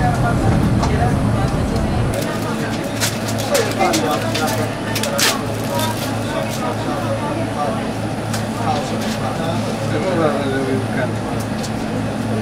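A train engine idles with a steady low hum.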